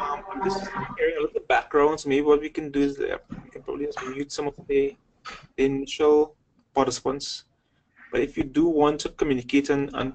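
A man speaks calmly and clearly into a microphone close by.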